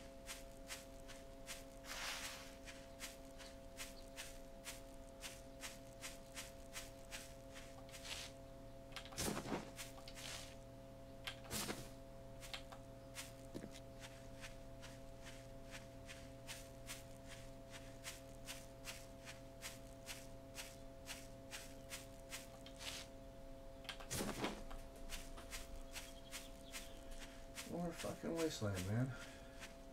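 Footsteps crunch steadily through grass.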